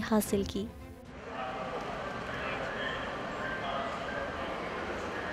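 Several people chatter in the background of a busy indoor hall.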